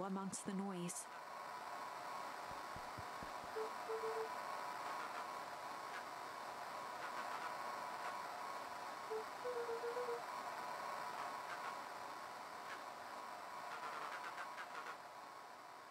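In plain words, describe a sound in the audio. Static hisses from a walkie-talkie.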